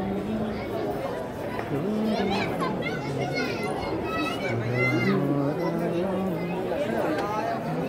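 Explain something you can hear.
A crowd of people chatters around.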